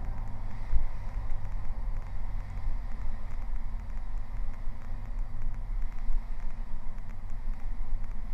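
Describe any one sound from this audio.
Wind rushes past the plane as it rolls down the runway.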